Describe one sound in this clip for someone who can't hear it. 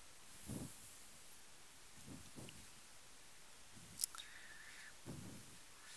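A felt eraser rubs across a chalkboard.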